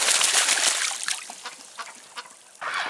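Water drips and trickles.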